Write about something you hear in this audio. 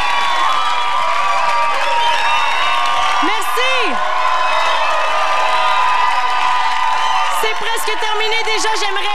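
A large crowd cheers and claps loudly.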